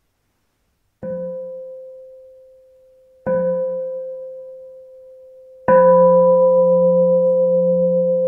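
A bell is struck three times and rings out slowly, heard through an online call.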